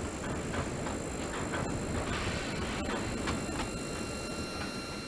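Freight boxcars roll past, wheels clicking over rail joints.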